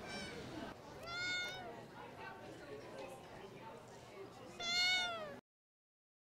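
A cat meows.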